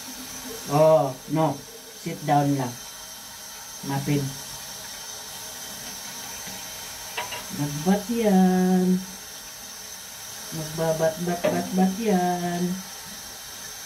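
A cat meows loudly and plaintively, close by.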